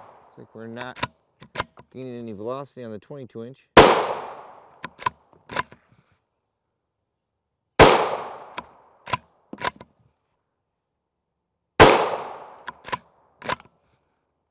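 A rifle bolt clicks sharply as it is worked.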